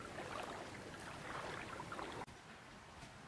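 Shallow water trickles and burbles over stones.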